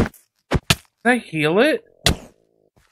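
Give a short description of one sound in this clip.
A man speaks with animation close to a headset microphone.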